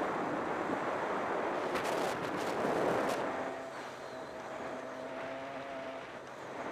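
A motorbike engine hums and revs.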